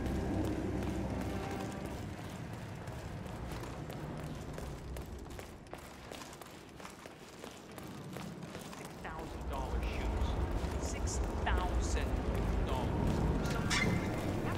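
Footsteps walk on a hard floor and stairs.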